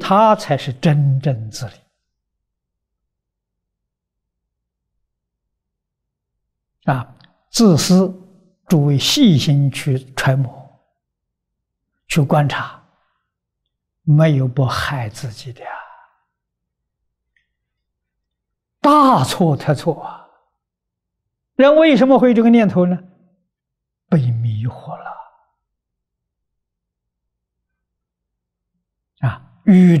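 An elderly man speaks calmly and warmly into a close microphone, with long pauses.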